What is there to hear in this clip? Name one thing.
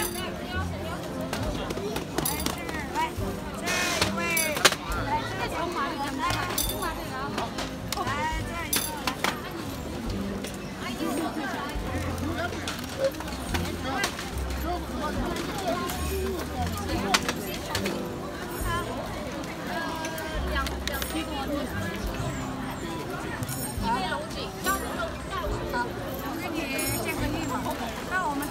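A crowd of adults chatters and talks all around, outdoors.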